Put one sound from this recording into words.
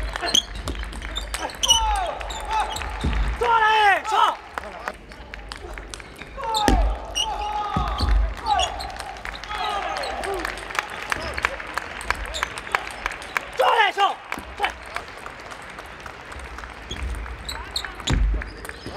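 A ping-pong ball clicks rapidly back and forth on paddles and a table in a large echoing hall.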